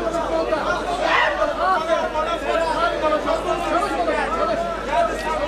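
A crowd of spectators shouts and cheers close by.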